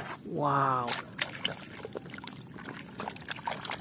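Soapy water sloshes and splashes as hands scrub in a tub.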